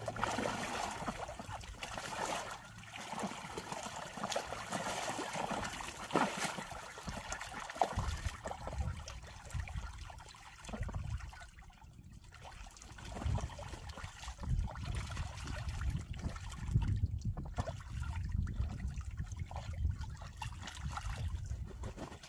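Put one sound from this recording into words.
Ducks splash and paddle in shallow water.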